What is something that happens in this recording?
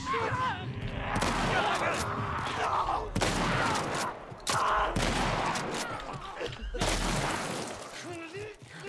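Shotgun blasts boom.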